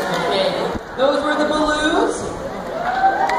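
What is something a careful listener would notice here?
A woman speaks loudly to the children.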